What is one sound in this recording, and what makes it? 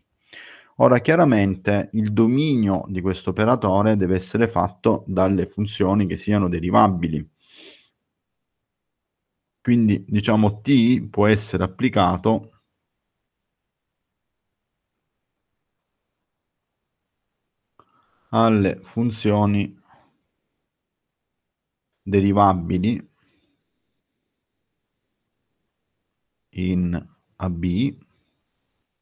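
A man speaks calmly through an online call, pausing between phrases.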